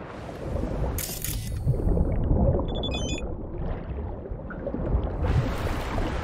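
Water rumbles and gurgles, muffled as if heard underwater.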